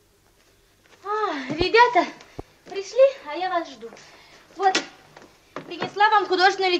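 A girl speaks with animation, close by.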